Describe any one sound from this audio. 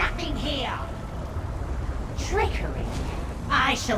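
A magic spell crackles and bursts.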